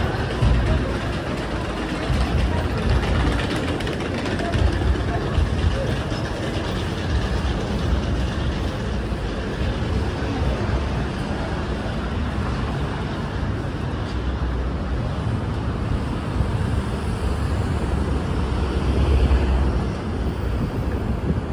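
Footsteps shuffle and tap on a hard floor.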